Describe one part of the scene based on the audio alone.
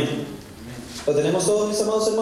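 A second man speaks loudly through a microphone.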